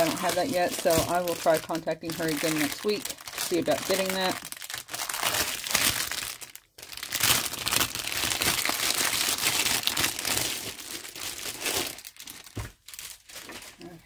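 A plastic wrapper crinkles as it is handled.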